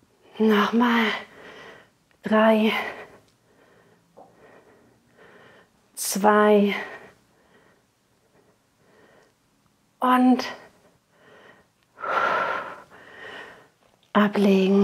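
A woman speaks clearly into a close microphone, giving calm instructions in short bursts.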